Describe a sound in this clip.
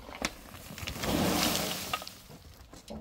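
Dirt and gravel pour out of a tipped bin with a rushing sound.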